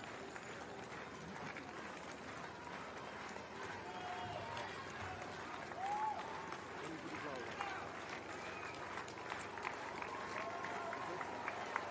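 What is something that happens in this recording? Inline skate wheels roll and hum on asphalt.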